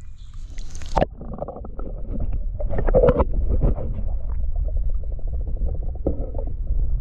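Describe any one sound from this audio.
River water rumbles and burbles, heard muffled from underwater.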